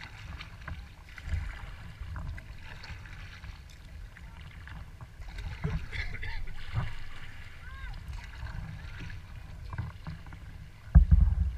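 Small waves lap against the hull of a kayak.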